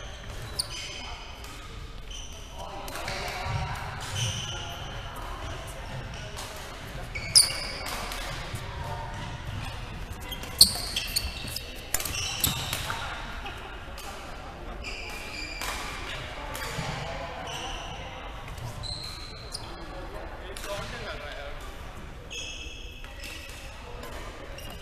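Shoes squeak sharply on a gym floor, echoing in a large hall.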